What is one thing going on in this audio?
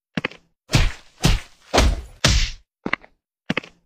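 Sharp hits land on a game character with short thumping smacks.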